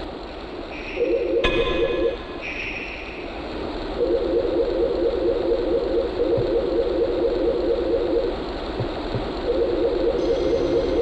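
Bats flap their wings in rapid flutters.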